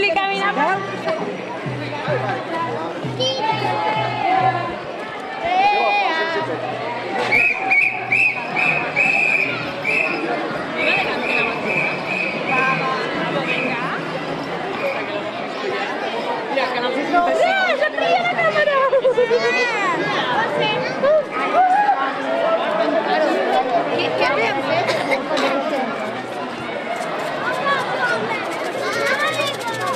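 Children chatter and shout close by in a lively outdoor crowd.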